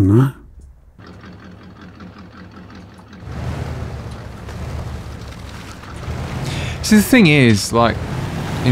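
A truck engine rumbles and strains.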